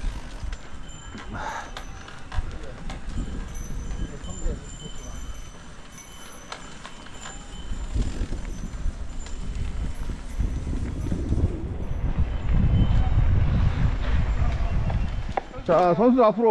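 Mountain bike tyres roll and crunch over a dirt trail.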